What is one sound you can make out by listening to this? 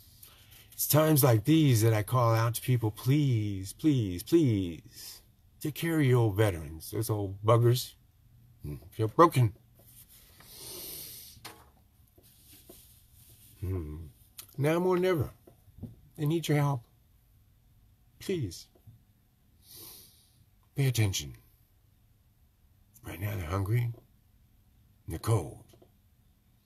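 An older man speaks slowly and calmly, close to a microphone, with long pauses.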